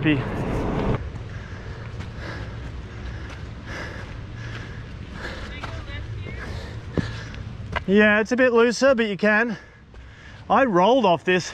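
Footsteps crunch on a rocky path.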